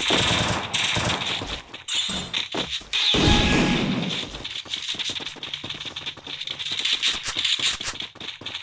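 Quick footsteps clatter on a metal floor.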